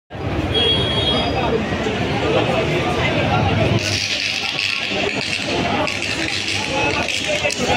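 A large crowd of people talks and shouts nearby outdoors.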